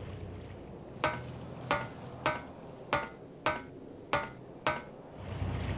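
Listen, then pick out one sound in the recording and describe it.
Hands and boots knock on a ladder's rungs during a climb.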